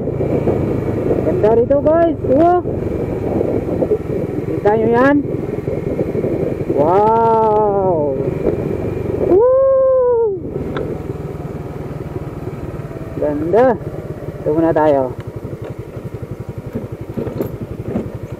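A motorcycle engine hums steadily and rises and falls.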